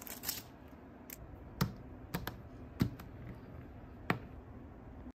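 Small plastic bricks clatter and click as they are handled.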